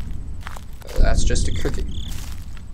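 A young man speaks softly close to a microphone.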